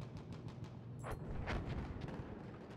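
A rifle fires a single sharp shot.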